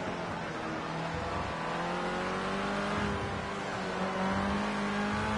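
A racing car engine drones at high revs, its pitch rising and falling through gear changes.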